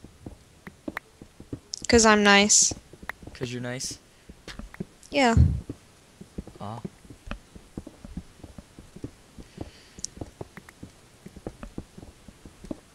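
A pickaxe taps repeatedly against stone.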